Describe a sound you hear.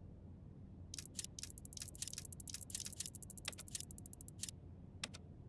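Keypad buttons click quickly one after another.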